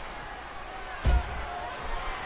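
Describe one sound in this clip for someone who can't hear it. A body slams down onto a wrestling mat with a heavy thud.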